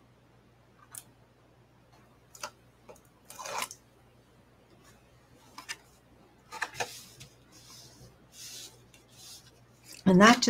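Stiff cardstock rustles and crackles as hands fold and handle it.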